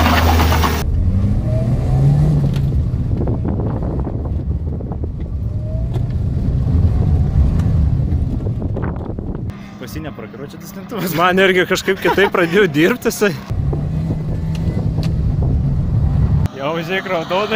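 A car engine rumbles and revs up close.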